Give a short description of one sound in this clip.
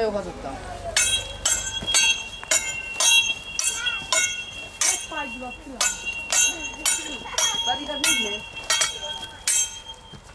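Steel swords clash with ringing metallic clangs.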